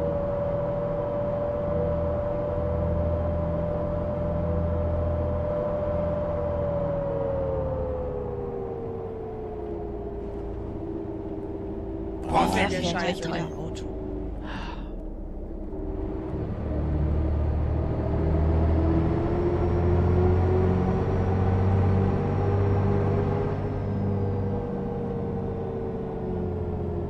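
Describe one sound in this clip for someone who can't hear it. A bus engine hums steadily and rises and falls in pitch as the bus drives along.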